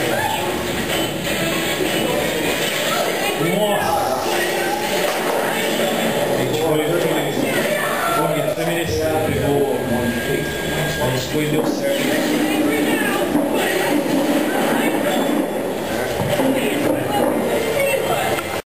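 Fighting game music plays loudly from a television.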